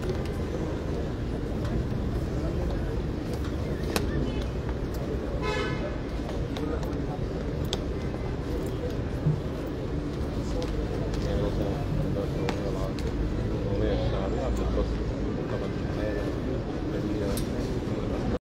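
Footsteps shuffle on steps.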